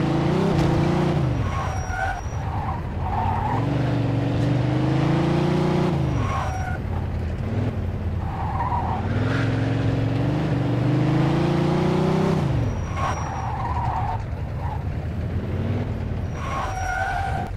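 A car engine revs up and down as gears shift.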